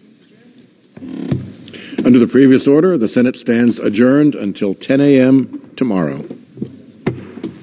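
A man speaks formally through a microphone in a large echoing hall.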